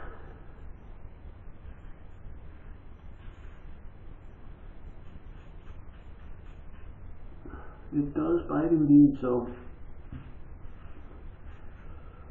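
A razor scrapes over stubble.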